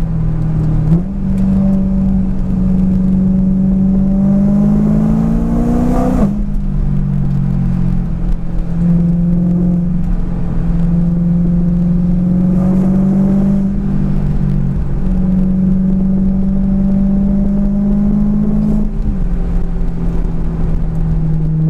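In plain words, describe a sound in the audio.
A car engine hums steadily from inside, rising in pitch as it speeds up and dropping at each gear change.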